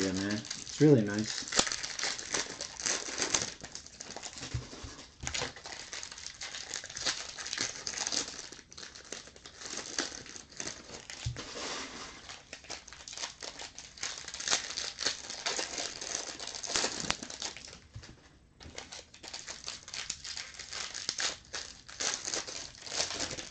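Plastic wrappers crinkle and rustle close by as hands tear open card packs.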